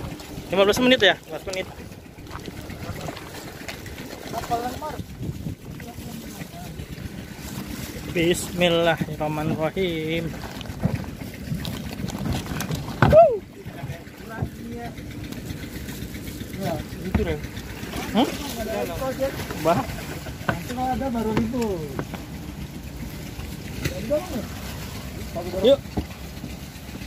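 Men talk casually nearby, outdoors.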